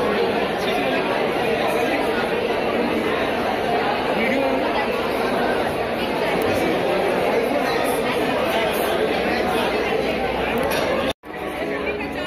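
A crowd chatters loudly all around.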